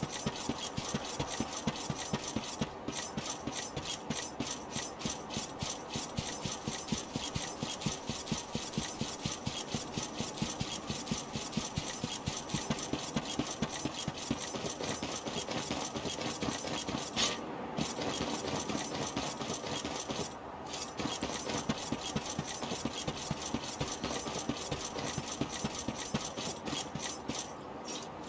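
Rapid footsteps run steadily.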